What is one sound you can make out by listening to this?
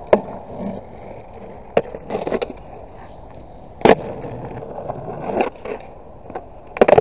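Skateboard wheels roll and rumble over rough asphalt outdoors.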